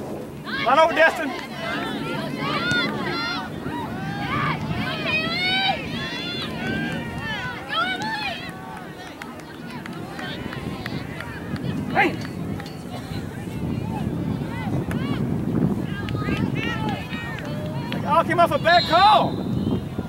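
Young women shout and call out to each other across an open outdoor field.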